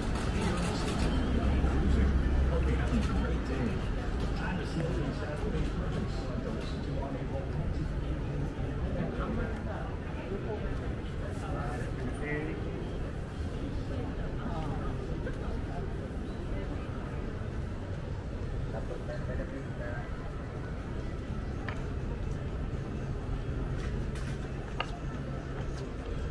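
Footsteps tap on a paved sidewalk close by.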